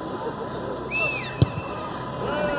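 A boot kicks a rugby ball with a dull thud.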